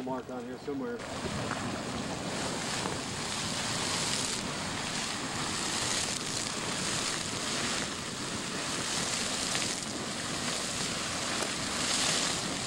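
A geyser hisses and roars loudly as it erupts steam and water outdoors.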